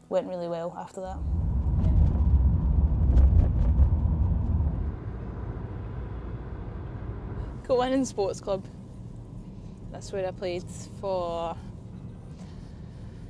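A car engine rumbles low.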